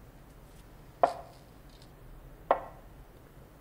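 A glass is set down on a table with a soft knock.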